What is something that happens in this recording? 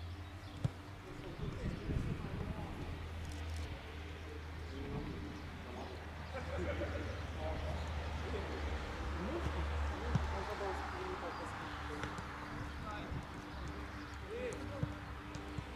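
Young players shout to each other across an open field.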